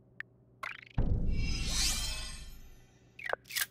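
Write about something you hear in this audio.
A game sound swells with a whoosh and fades away.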